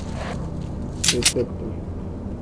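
Metal weapon parts click and clatter as one gun is put away and another is drawn.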